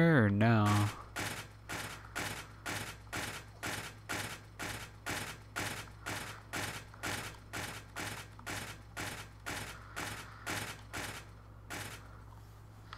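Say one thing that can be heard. Footsteps clang steadily on a metal grating.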